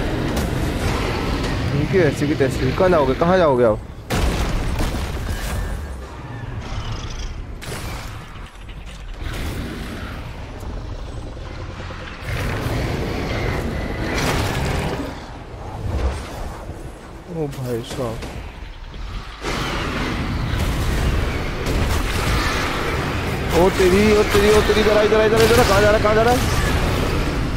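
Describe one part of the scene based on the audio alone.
A dragon breathes fire with a loud rushing roar.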